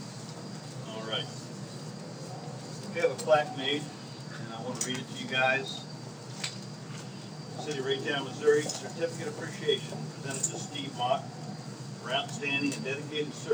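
An elderly man speaks calmly outdoors.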